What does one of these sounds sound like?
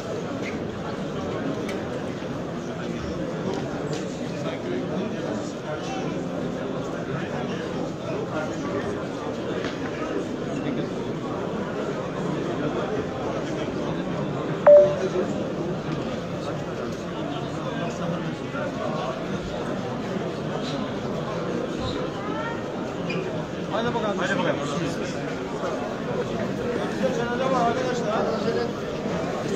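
A large outdoor crowd of men murmurs and talks.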